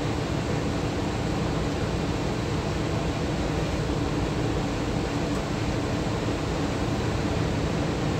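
Rough waves churn and splash against a ship's hull.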